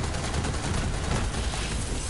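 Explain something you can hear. An explosion from a game booms loudly.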